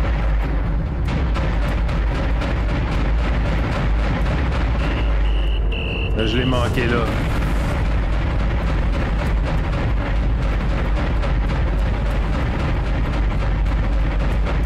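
Rapid laser gunfire rattles steadily.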